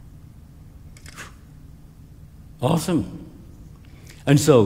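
An elderly man speaks slowly and calmly through a microphone in an echoing hall.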